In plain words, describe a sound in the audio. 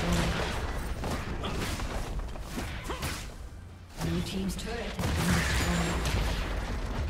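Spell effects crackle and burst during a game fight.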